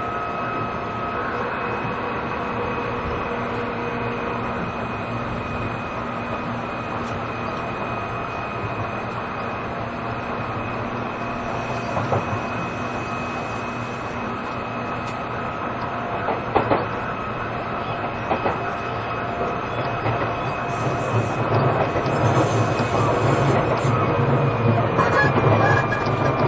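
An electric train idles nearby with a steady hum.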